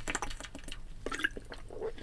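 A young man sips water from a plastic bottle close to a microphone.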